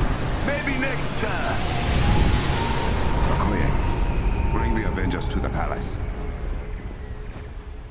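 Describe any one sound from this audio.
A jet aircraft engine roars loudly as the craft lifts off.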